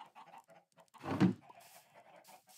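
A wooden barrel thumps shut.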